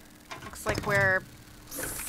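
A machine knob clicks as it turns.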